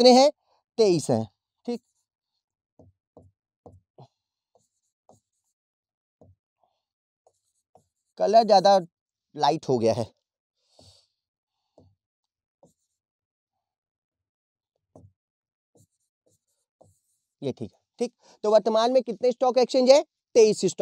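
A man speaks clearly and calmly into a close microphone, in short bursts.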